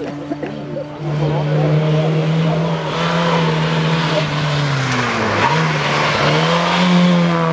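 A second small historic rally car revs hard as it takes a hairpin.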